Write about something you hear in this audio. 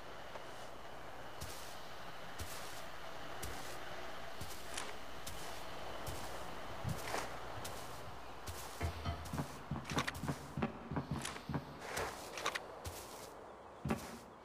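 Footsteps tread steadily over grass and wooden boards.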